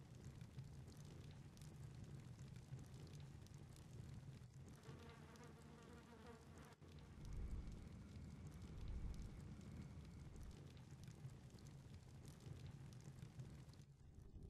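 A fiery spell bursts with a whoosh and crackle.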